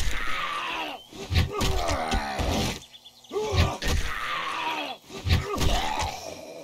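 A club thuds hard against a body.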